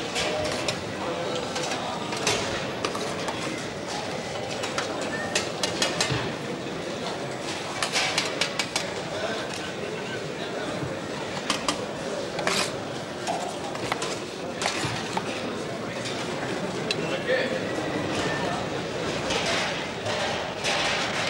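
Metal serving spoons clink and scrape against steel trays.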